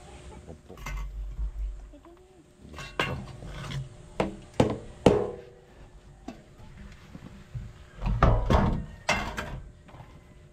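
A metal lid clanks against a pot.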